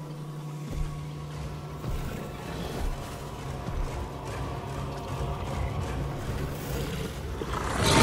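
A large creature growls low and rumbling.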